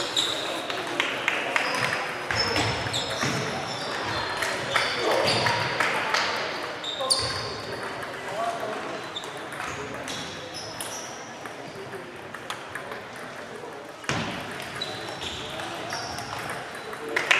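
Table tennis balls click and bounce on tables throughout a large echoing hall.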